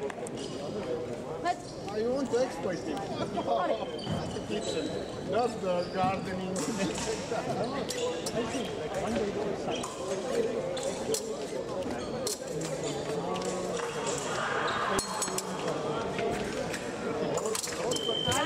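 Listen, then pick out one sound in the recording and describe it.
Fencers' feet tap and shuffle on the floor.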